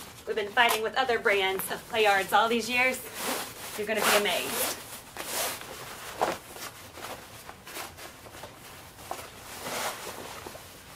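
A fabric bag rustles and swishes as it is handled.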